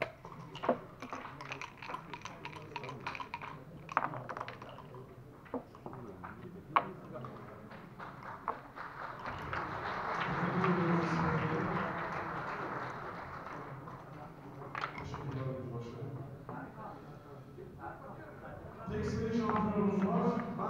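Game pieces click and clack against a wooden board.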